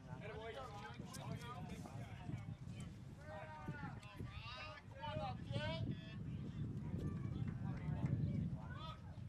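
A crowd of spectators murmurs and chats outdoors.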